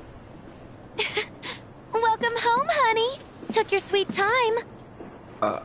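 A young woman speaks playfully and teasingly.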